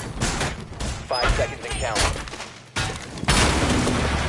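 Wooden boards knock and thud as a barricade is put up.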